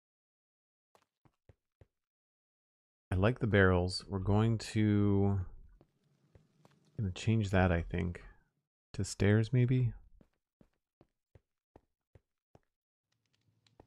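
Footsteps tap softly on stone.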